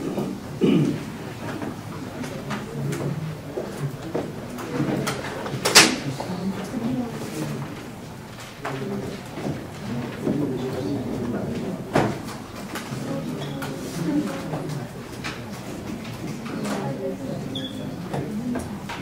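A man lectures at a distance in a room with a slight echo.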